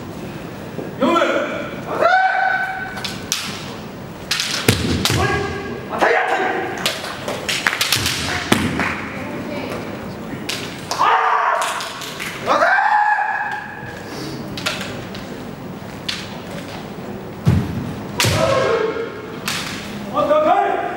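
Fencers shout loud, drawn-out cries in a large echoing hall.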